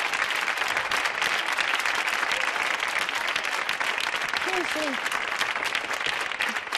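An elderly woman speaks quietly and hesitantly.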